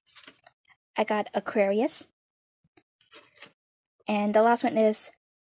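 Stiff cards slide and tap softly against each other as they are handled.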